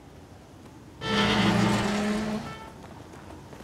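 A heavy iron gate creaks loudly as it swings open.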